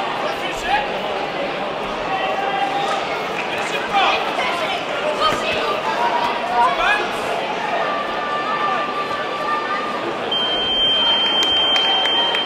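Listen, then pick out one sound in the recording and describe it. A crowd chatters steadily in a large echoing hall.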